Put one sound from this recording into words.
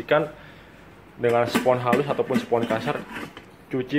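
A metal lid clinks and clicks onto a pot.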